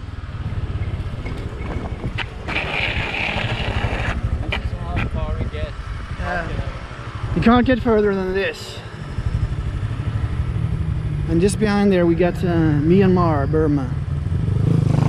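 A motor scooter engine runs with a steady low throb.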